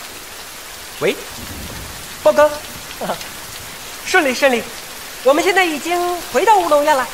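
A young man speaks cheerfully into a phone close by.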